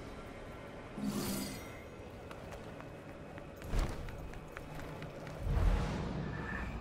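A heavy impact thuds.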